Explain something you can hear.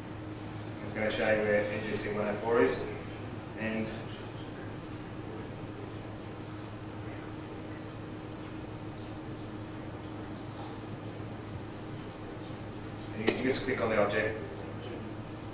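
A man speaks in short bursts from a distance in a large, echoing room.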